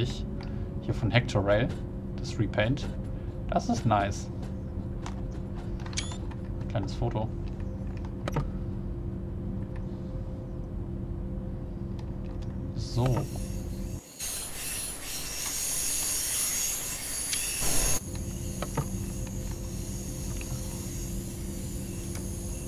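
A diesel multiple unit hums and rumbles along the track, heard from inside the cab.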